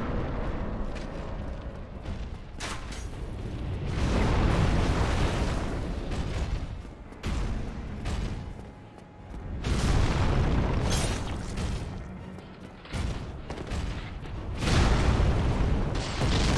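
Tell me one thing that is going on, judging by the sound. A giant stone golem stomps with heavy, booming thuds.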